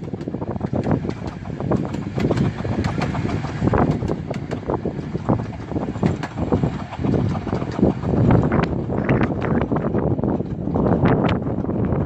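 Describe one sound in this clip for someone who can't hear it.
Railway carriages rumble and clatter along the track, moving away.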